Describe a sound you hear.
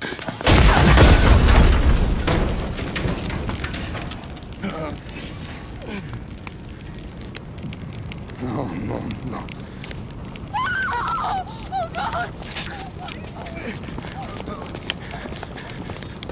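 Flames crackle from a burning car.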